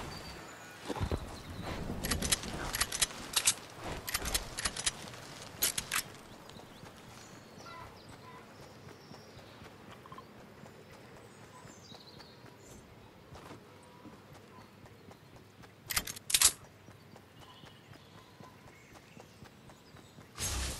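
Footsteps patter quickly on grass and dirt as a game character runs.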